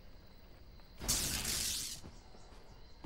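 A heavy blade whooshes through the air with a loud rushing sweep.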